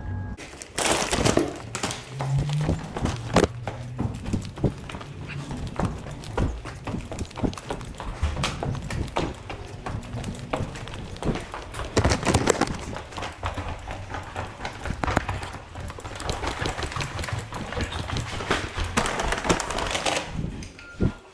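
Footsteps thud on metal stairs.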